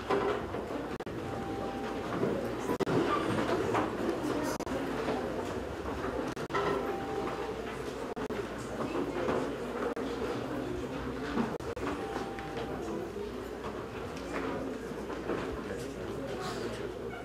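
An elderly man speaks calmly and steadily in a room with a slight echo.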